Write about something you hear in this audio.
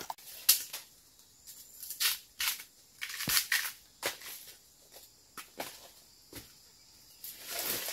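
Dry leaves and twigs rustle and crackle underfoot.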